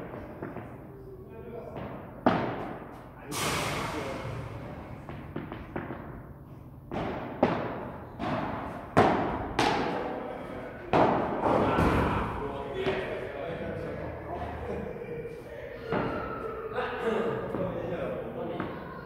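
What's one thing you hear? A ball bounces off the court and glass walls.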